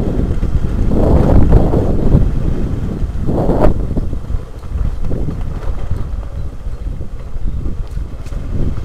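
Tyres crunch and bump over a rough dirt track.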